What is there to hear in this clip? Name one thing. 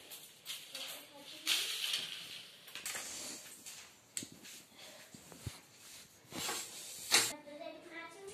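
A broom sweeps across a hard floor with soft brushing swishes.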